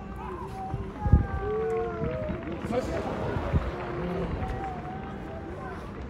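A crowd of fans cheers loudly.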